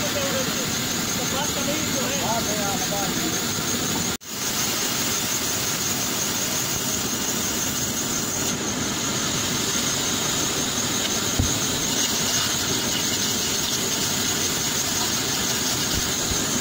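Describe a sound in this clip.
A band saw whirs loudly and steadily.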